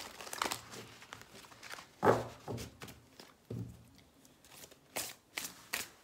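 Cards are handled and flicked with soft slaps.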